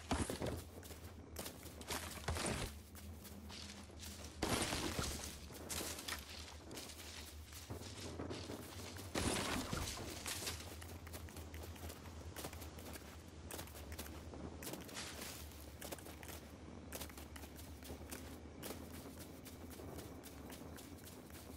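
Footsteps patter steadily over soft ground.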